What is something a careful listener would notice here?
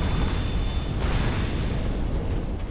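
A fiery blast roars.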